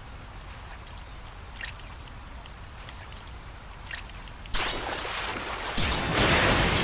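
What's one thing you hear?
Water splashes as a tail swishes through it.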